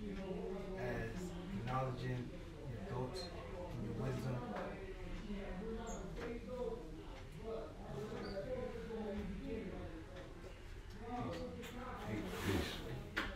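Adult men and women talk quietly nearby.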